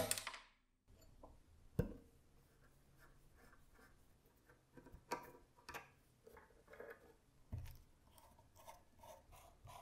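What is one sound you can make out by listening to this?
Small metal parts click together in hands.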